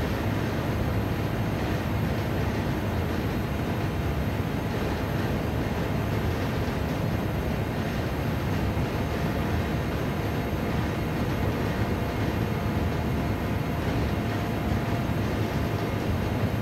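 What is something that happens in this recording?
A race car engine roars steadily from inside the cabin.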